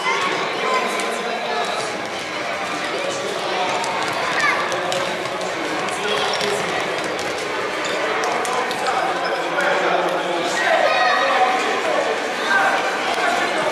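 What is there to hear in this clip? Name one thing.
Sneakers squeak on a hard indoor floor.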